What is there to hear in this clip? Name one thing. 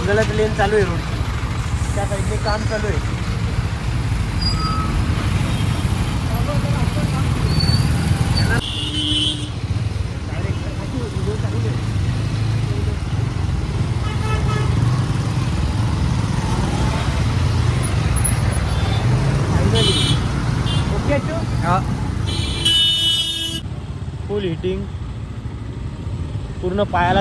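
A motorcycle engine idles and rumbles close by.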